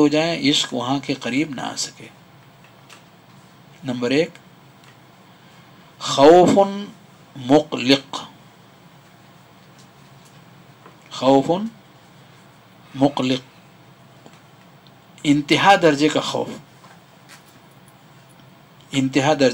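A middle-aged man speaks calmly into a headset microphone, with long pauses.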